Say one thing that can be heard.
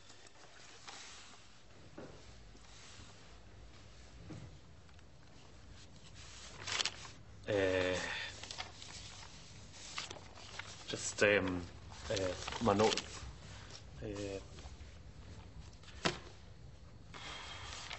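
Paper rustles in hands.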